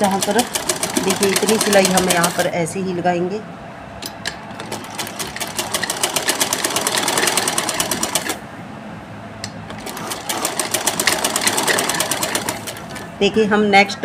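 A sewing machine rattles quickly as it stitches.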